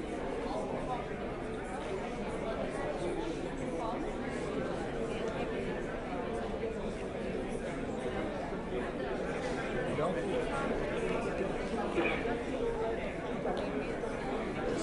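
A crowd of people murmurs and chatters indoors.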